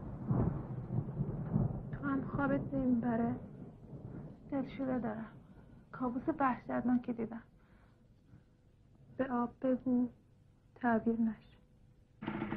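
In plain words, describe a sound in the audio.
A second young woman answers in a low, quiet voice.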